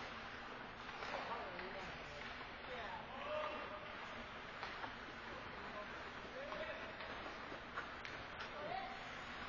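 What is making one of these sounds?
Players shout to each other across the rink.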